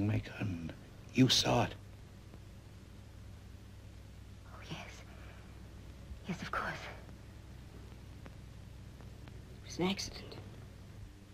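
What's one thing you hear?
A woman speaks in short, anxious phrases close by.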